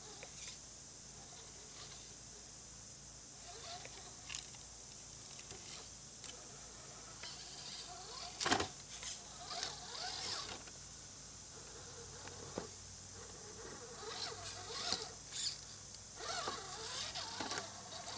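A small electric motor whines as a toy truck crawls over rocks.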